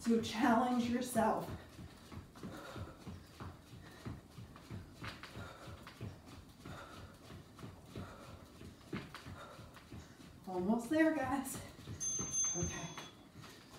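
Sneakers tap lightly on a floor as a woman steps in place.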